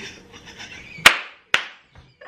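A young man claps his hands.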